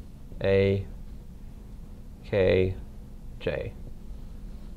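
A man speaks loudly and clearly nearby, in short bursts.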